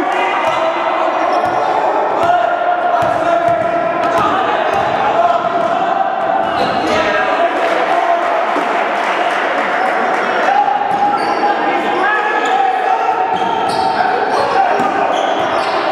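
A basketball bounces on a hardwood floor in an echoing gym.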